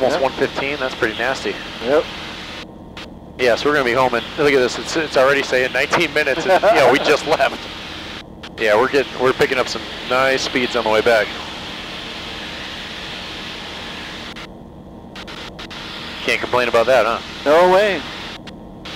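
A middle-aged man talks with animation over a headset intercom.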